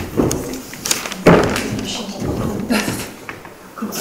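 Paper rustles as a sheet is handed over.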